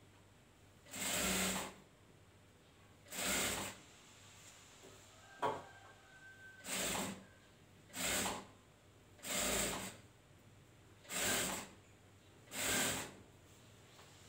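A sewing machine runs in short, loud bursts with pauses between them.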